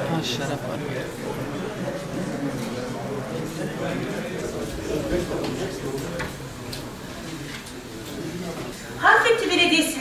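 Many people murmur and chat in a large room.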